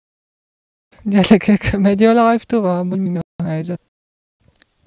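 A young man speaks close into a microphone.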